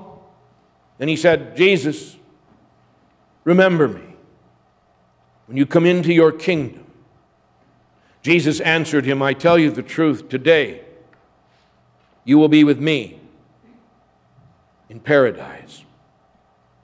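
A middle-aged man reads out slowly in short phrases over a microphone in an echoing room.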